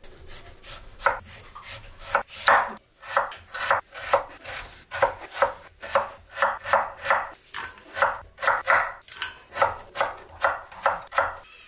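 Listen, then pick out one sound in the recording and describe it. A knife chops on a wooden board in quick, even strokes.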